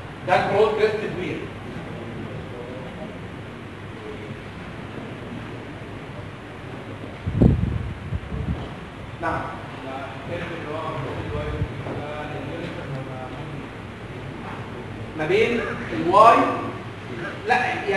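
A man speaks aloud, lecturing calmly.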